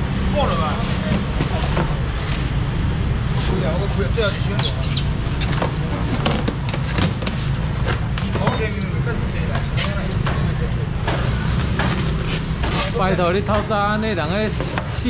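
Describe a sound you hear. A busy crowd murmurs and bustles all around.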